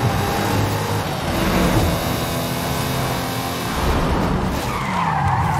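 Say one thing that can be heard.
A sports car engine roars steadily at high speed.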